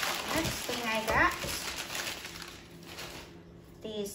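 Tissue paper crinkles and rustles.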